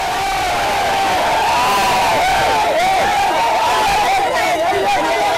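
A crowd of men shouts and yells loudly close by.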